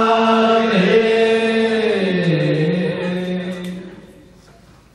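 A man chants in a long, drawn-out sung tone through a microphone.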